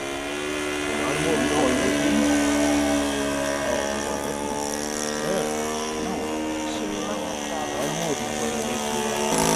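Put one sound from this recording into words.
A helicopter drones steadily overhead as it flies past.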